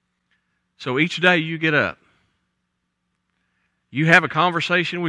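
A middle-aged man speaks with animation into a microphone, with pauses between phrases.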